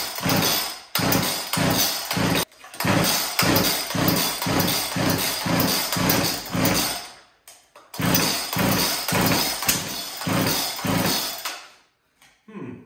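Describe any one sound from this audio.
A chainsaw's starter cord is pulled again and again with a rapid rasping whir.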